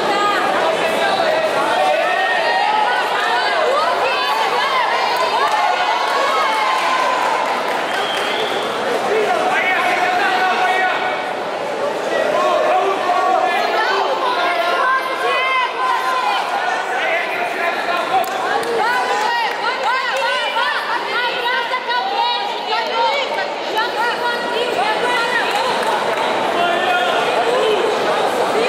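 A crowd of men and women chatter and shout in a large echoing hall.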